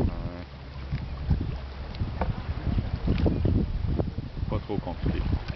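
A knife slices through soft fish flesh on a wooden board.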